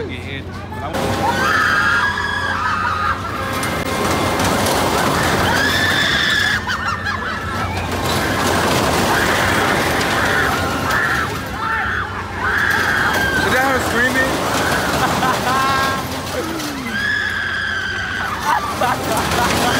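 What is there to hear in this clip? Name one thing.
Riders on a fairground ride scream loudly.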